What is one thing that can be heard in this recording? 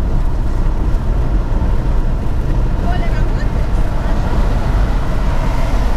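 A truck passes close by with a rushing whoosh.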